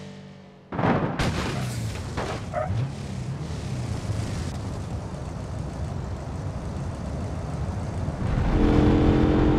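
A heavy truck engine rumbles as it drives.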